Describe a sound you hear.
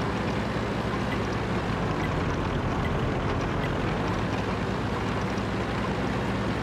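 A heavy tank engine rumbles steadily as the tank rolls along.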